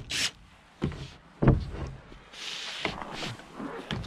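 Gloved hands knock and rub against a wooden board.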